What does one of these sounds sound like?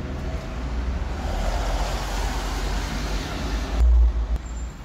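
A car drives past on a wet road.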